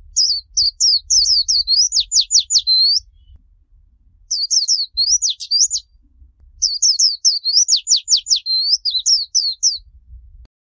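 A small bird sings a quick, high, twittering song in bursts.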